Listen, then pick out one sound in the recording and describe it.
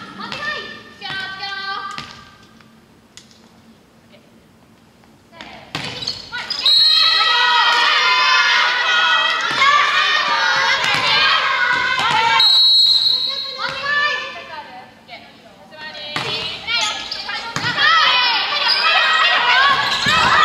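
Young women shout and call out loudly in a large echoing hall.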